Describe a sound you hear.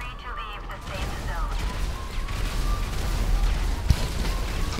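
A vehicle explodes with a deep, rumbling boom.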